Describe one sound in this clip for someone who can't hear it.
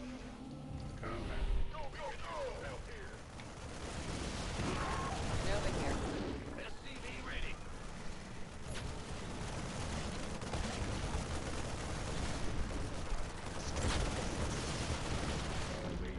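Gunfire crackles in a game battle.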